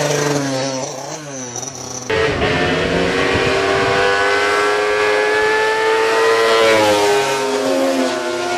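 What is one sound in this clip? A vintage motorcycle engine roars as the bike climbs a hill under load and approaches.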